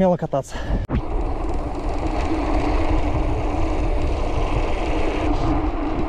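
Bicycle tyres rumble over paving stones.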